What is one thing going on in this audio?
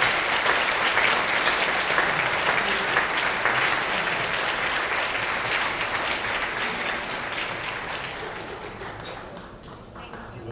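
An audience applauds in a large hall, then fades out.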